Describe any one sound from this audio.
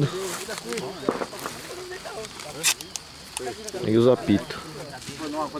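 Paper rustles as men handle a large paper balloon.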